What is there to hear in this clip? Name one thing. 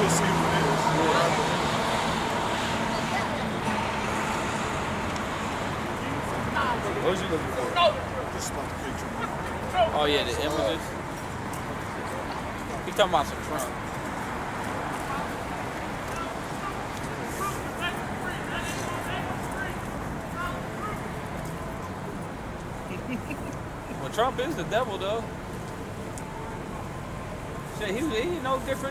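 A man reads aloud in a loud, preaching voice outdoors.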